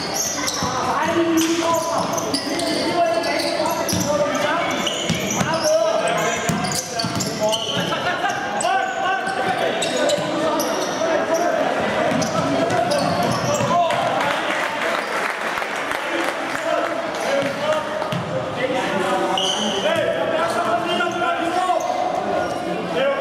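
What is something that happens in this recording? A crowd of spectators murmurs and calls out in a large echoing hall.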